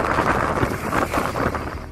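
Another motorbike passes close by.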